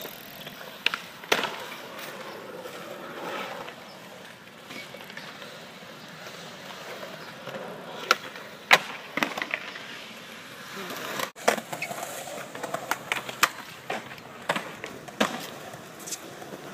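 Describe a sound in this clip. Skateboards clack and snap sharply against concrete.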